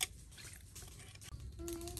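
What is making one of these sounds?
Water splashes softly as hands wash something in a basin.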